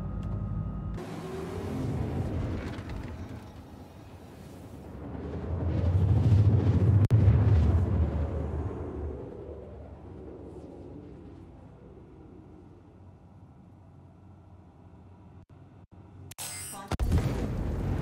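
A spacecraft engine rumbles and roars through the air.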